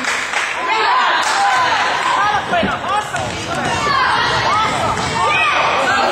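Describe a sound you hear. Sneakers squeak sharply on a hardwood floor, echoing in a large hall.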